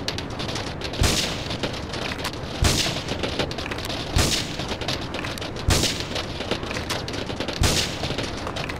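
A rifle fires sharp, loud shots one at a time.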